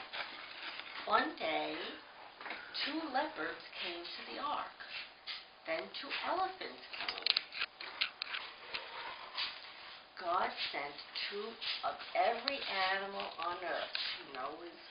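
A middle-aged woman talks softly, close by.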